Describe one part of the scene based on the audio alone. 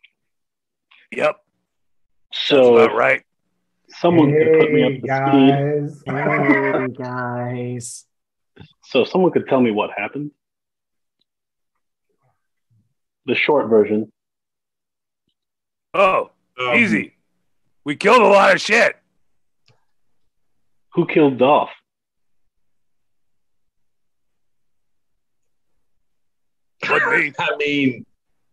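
Several men talk and laugh together over an online call, in bursts with pauses between them.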